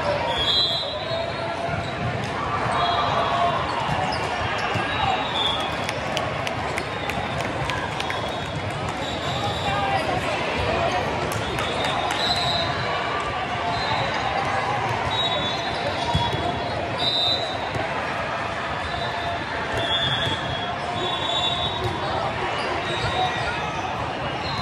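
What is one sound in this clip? A crowd chatters and calls out across a large echoing hall.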